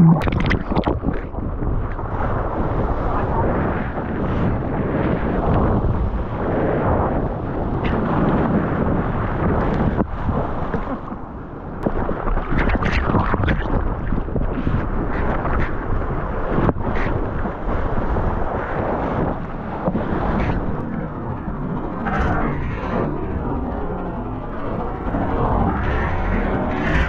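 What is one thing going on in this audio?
Water splashes and churns close by.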